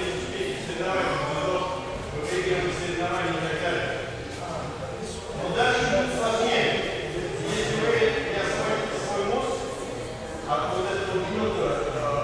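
A man speaks loudly and steadily in a large echoing hall.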